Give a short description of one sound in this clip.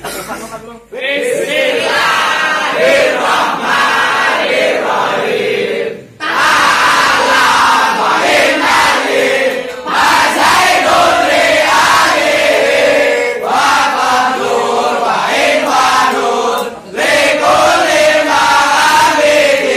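A group of young men sings loudly together in chorus, close by.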